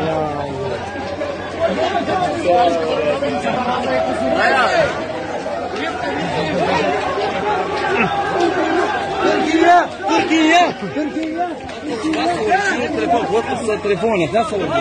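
A crowd of men and women chant and shout loudly outdoors, close by.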